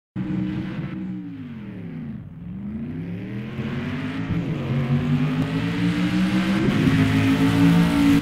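A racing car engine roars, its pitch dropping and then rising as it speeds closer.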